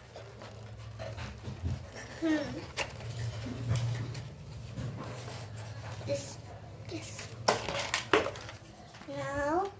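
Cardboard packaging rustles and crinkles.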